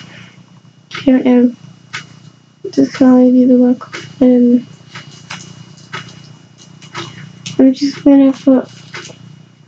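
A young girl speaks close to a microphone in short bursts.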